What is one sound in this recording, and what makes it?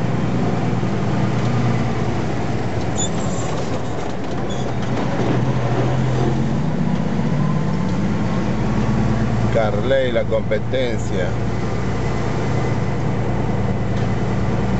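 Heavy truck engines rumble loudly as trucks pass close by.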